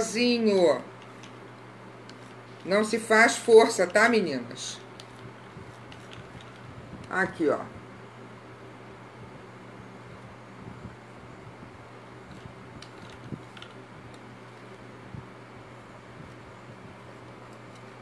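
Paper rustles as a woman folds it.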